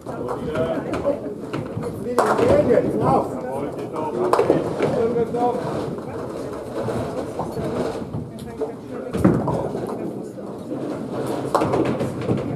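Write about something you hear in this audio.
Bowling balls rumble as they roll down lanes in an echoing hall.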